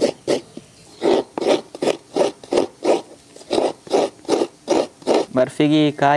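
Coconut flesh scrapes rhythmically against a grater.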